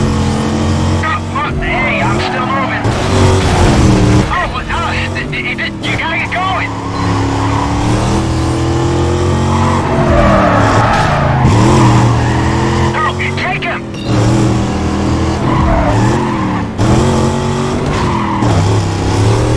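Tyres squeal as a car slides through corners.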